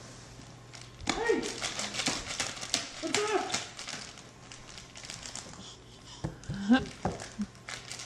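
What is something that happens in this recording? Plastic toys clatter and rattle.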